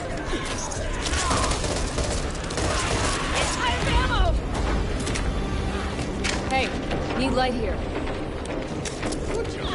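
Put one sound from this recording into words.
Zombies shriek and growl.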